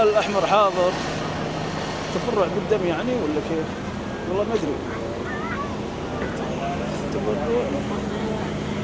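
A bus engine idles with a low steady hum.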